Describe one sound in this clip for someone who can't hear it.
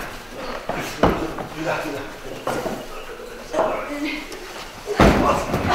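A heavy load thumps down onto a wooden table.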